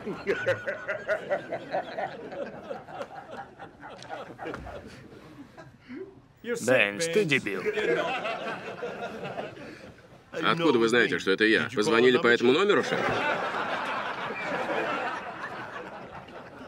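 A group of men laugh.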